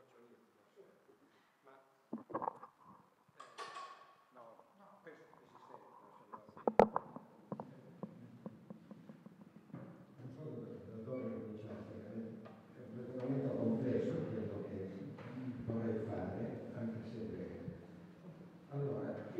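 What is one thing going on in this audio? An elderly man speaks calmly in a large, echoing room.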